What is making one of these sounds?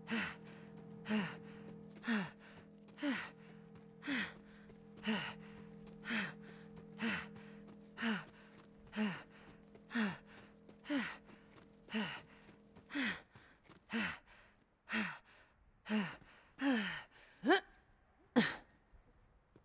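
Heavy footsteps thud steadily on dirt, about once a second, then stop.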